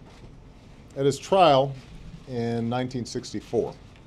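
A man speaks calmly and deliberately into a microphone.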